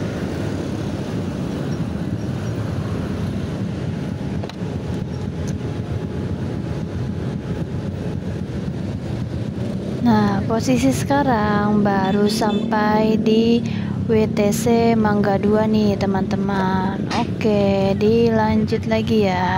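Motorbike engines hum and rumble in busy street traffic.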